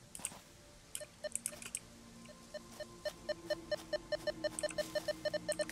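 An electronic scanner beeps in short pitched bursts, faster and faster.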